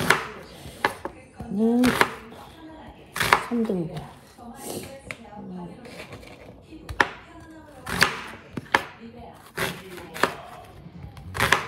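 A knife crunches through a raw onion.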